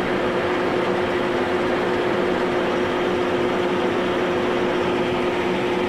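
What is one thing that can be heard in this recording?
Grain pours with a rushing hiss into a trailer.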